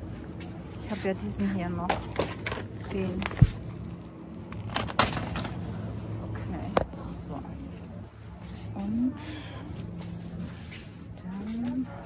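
A shopping cart rattles as it rolls along a hard floor.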